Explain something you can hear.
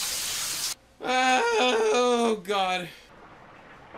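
A second young man exclaims close to a microphone.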